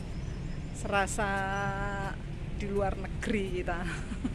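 A middle-aged woman laughs close to the microphone.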